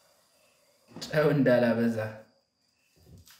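A young man speaks briefly and close by.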